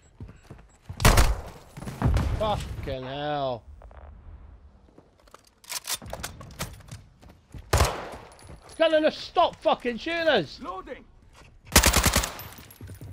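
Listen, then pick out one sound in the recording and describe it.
A sniper rifle fires single loud shots.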